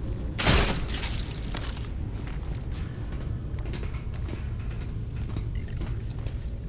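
Heavy boots clank on a metal grating.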